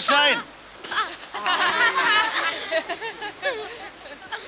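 Children laugh and shout playfully.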